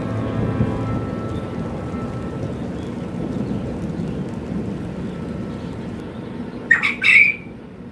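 Caged birds cluck and chirp softly nearby.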